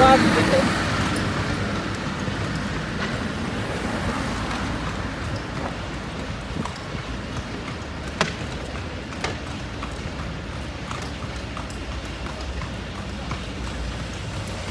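Traffic rumbles on the street.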